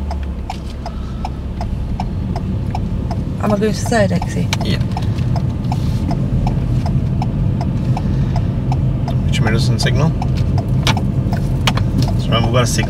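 A turn signal ticks steadily inside the car.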